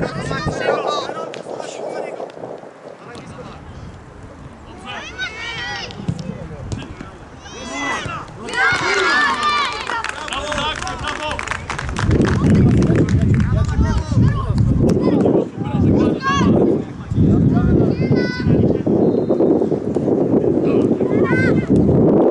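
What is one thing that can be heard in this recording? Children shout and call out across an outdoor pitch.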